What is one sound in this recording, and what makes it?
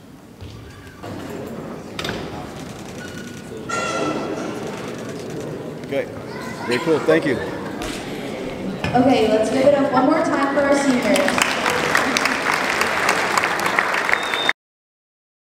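Young people chat and laugh nearby in a large echoing hall.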